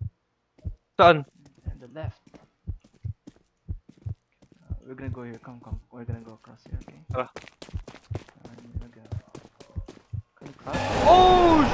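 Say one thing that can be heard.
Footsteps tread steadily over rough ground.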